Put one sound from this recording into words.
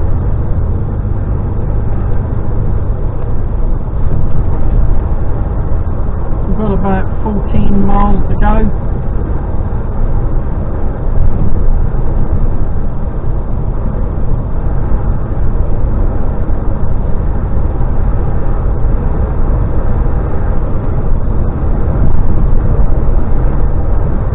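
A vehicle's engine rumbles steadily.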